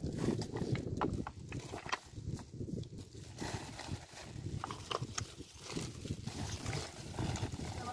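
A plastic tarp rustles and crinkles as it is handled.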